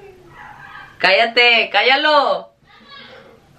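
A young woman exclaims loudly in a high, sing-song voice.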